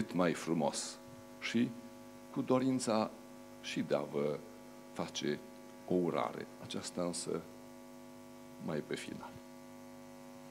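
An elderly man speaks calmly through a microphone in a large room.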